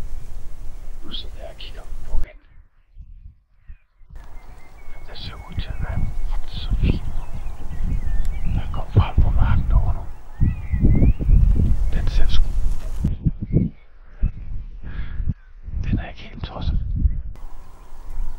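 A man speaks in a low voice close to a microphone.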